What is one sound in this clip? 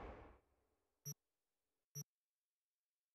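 Short soft electronic beeps chime twice, as from a game menu.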